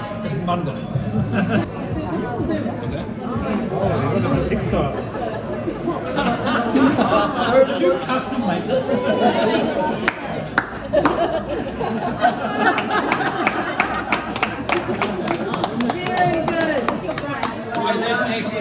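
A crowd of people chat in the background.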